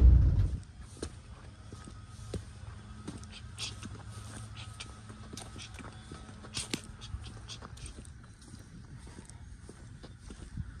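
Footsteps tap on a stone path outdoors.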